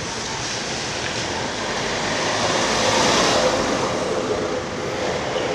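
A van drives past close by, its tyres hissing on a wet road.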